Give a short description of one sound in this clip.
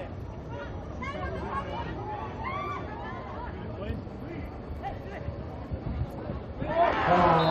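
Men shout on a playing field.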